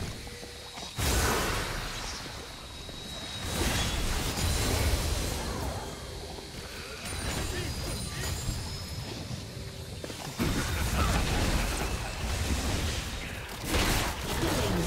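Game attacks hit with sharp bursts.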